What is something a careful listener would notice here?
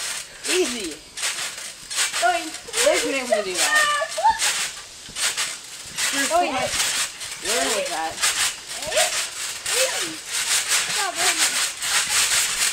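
Young boys shout and squeal with excitement outdoors.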